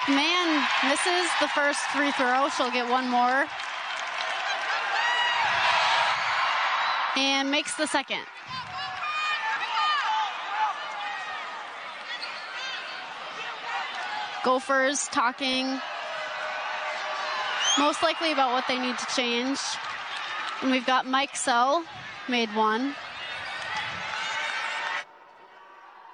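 A crowd cheers and murmurs in a large echoing arena.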